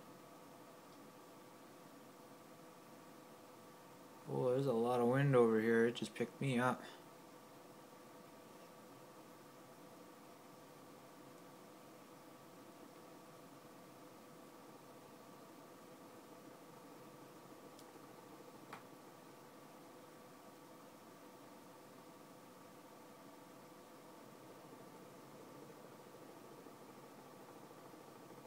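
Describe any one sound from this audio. A flight simulator hums steadily with a low electronic drone.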